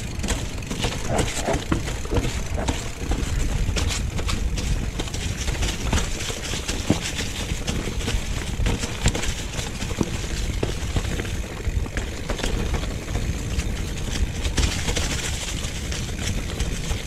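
Wind rumbles past close by.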